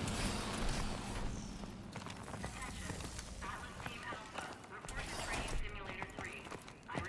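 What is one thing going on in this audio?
Heavy boots thud on hard ground as a soldier runs.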